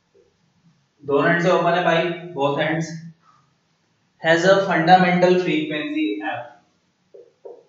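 A young man speaks as if lecturing.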